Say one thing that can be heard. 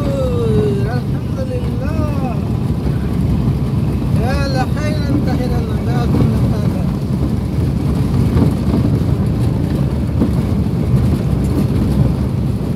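A vehicle's engine and tyres rumble steadily on a paved road.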